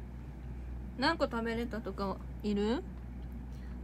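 A young woman speaks close by in a high, animated voice.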